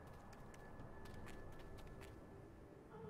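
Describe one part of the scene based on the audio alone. Footsteps crunch softly on grass and gravel.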